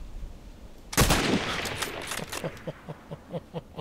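A rifle bolt clacks as the rifle is reloaded.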